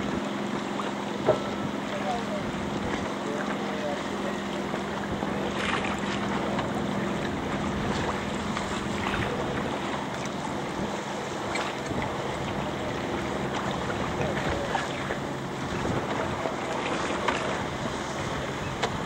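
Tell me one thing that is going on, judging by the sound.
Gusty wind blows across open water.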